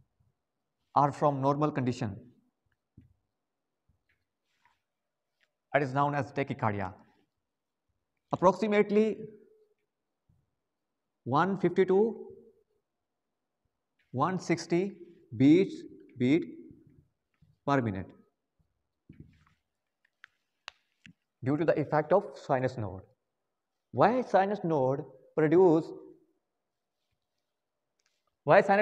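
A young man speaks calmly in short phrases, close by.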